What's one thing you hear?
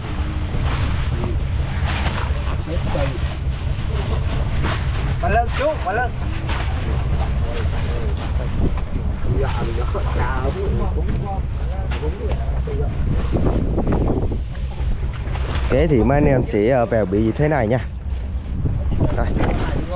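A boat engine rumbles steadily throughout.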